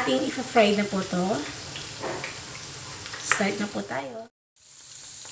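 A young woman talks to the microphone in a friendly, animated way.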